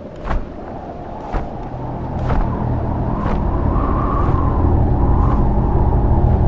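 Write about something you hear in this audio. A large bird's wings beat in the air.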